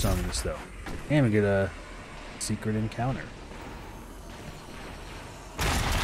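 A monster growls and roars up close.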